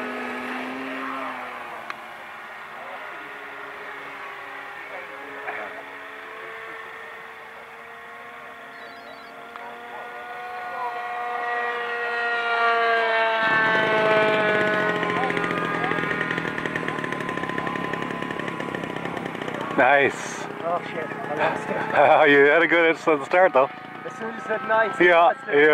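A model airplane engine whines overhead, rising and falling in pitch as it loops and dives.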